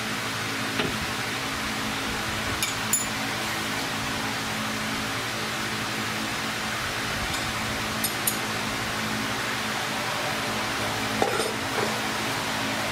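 Metal tools clink and knock against car parts.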